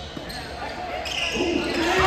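A basketball bounces on a hard floor.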